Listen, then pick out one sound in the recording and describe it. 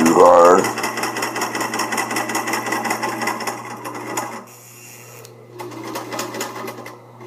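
A sewing machine runs with a fast, steady whir and rapid tapping.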